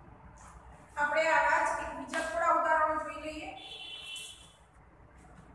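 A girl speaks clearly and with energy, close by.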